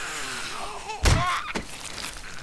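A knife strikes flesh with a thud.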